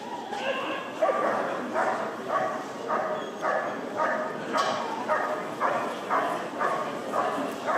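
A dog barks repeatedly and loudly outdoors.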